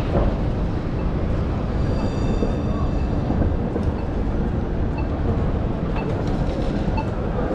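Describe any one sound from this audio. Suitcase wheels rumble over pavement nearby.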